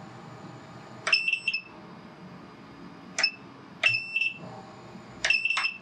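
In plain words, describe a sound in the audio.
A remote controller beeps in short, high tones.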